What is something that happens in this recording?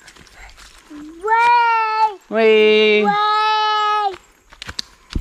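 A young child squeals and calls out loudly, close by.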